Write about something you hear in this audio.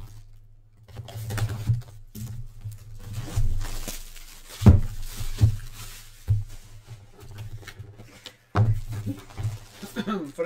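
Plastic shrink wrap crinkles and rustles as hands handle a box.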